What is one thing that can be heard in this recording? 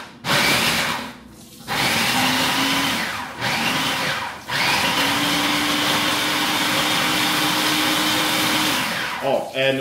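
A blender whirs loudly in short bursts.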